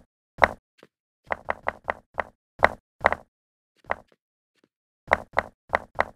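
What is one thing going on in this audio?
Stone blocks clunk into place with short, sharp taps.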